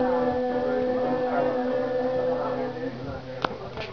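A woman sings a long held note into a microphone.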